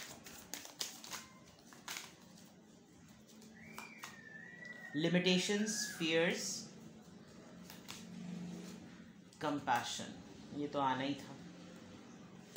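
Playing cards slap and tap softly as they are shuffled and laid down.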